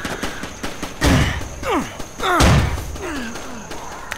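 A pistol fires sharp shots.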